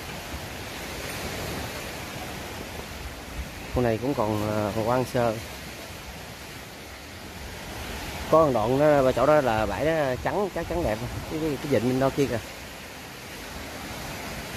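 Small waves wash gently onto a beach.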